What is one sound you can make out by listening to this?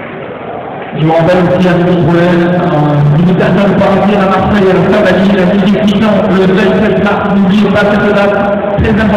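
A man speaks loudly through a loudspeaker, announcing.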